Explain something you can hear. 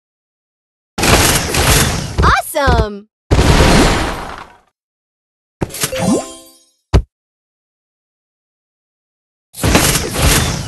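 A rocket whooshes and explodes in a loud blast.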